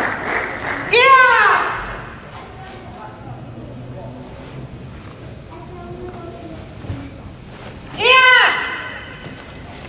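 A woman shouts sharp karate kiai in an echoing hall.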